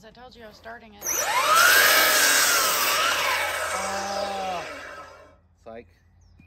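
A power saw whines loudly as it spins up and winds down.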